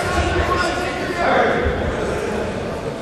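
A group of boys shouts together in unison.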